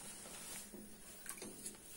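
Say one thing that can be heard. Protective fabric rustles close by.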